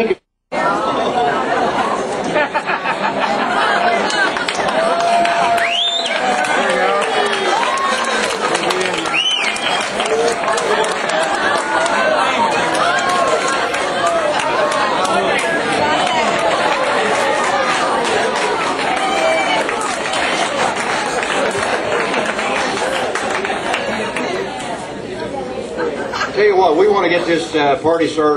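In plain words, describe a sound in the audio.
A crowd of people chatters and laughs in a large room.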